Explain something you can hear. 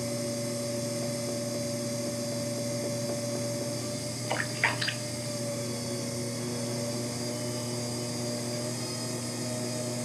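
Wet clay squelches softly under hands on a spinning wheel.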